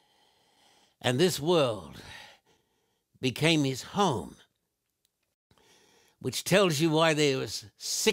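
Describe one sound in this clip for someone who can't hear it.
An elderly man speaks slowly and emphatically into a microphone, with pauses between phrases.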